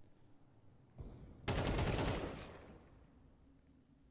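A burst of rifle gunfire rings out.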